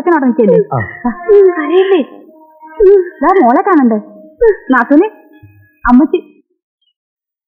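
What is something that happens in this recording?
Women talk with animation, close by.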